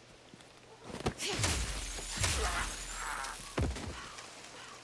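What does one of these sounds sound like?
Heavy blows land in a struggle.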